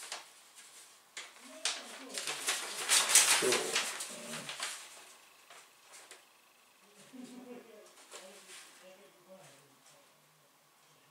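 Newspaper pages rustle and crinkle close by.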